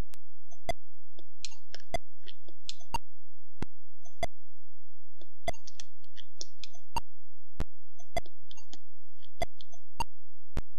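Short electronic blips sound as game pieces move.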